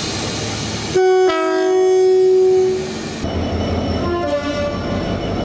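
A diesel locomotive sounds a two-tone horn.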